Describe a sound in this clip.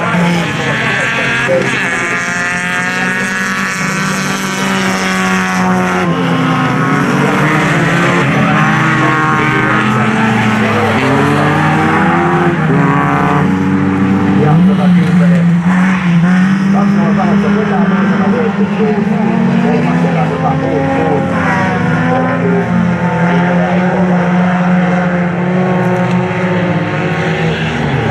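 Several car engines roar and rev hard close by, rising and falling in pitch as cars race past.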